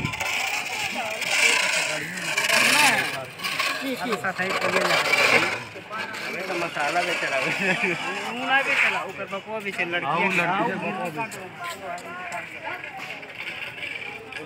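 Young men talk casually with each other close by outdoors.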